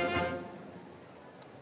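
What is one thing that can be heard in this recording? A band holds a final chord that quickly fades, echoing in a large hall.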